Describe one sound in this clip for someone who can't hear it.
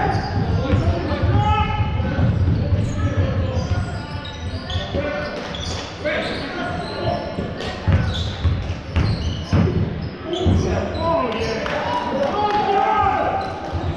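Players shout and call out to each other across the hall.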